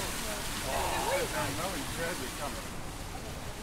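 Adults talk nearby outdoors.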